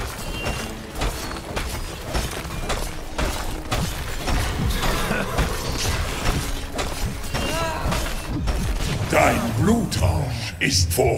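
Game combat effects clash and burst rapidly.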